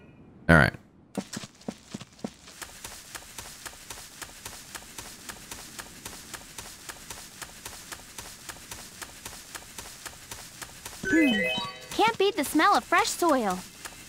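Footsteps pad across grass.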